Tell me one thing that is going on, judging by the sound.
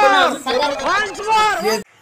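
A man talks with animation nearby.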